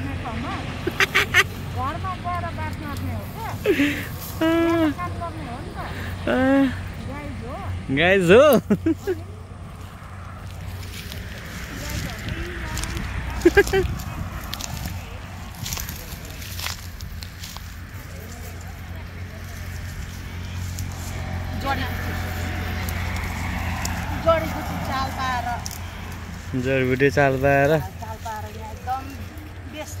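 Dry leaves and twigs rustle and snap as hands pick through bushes.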